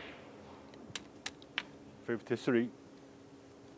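Snooker balls knock together with hard clacks.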